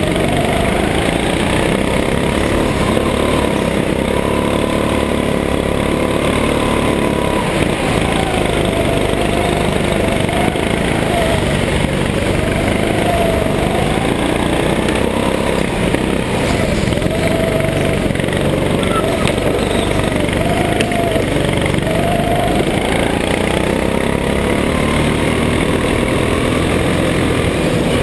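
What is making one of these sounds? A go-kart engine buzzes loudly close by, its pitch rising and falling with the throttle.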